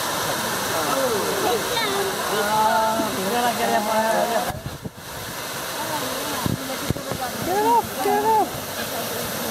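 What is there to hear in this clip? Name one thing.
A group of adults chatter and laugh nearby.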